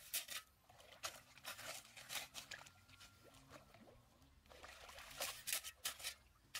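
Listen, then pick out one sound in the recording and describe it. A hoe scrapes and splashes through wet mud.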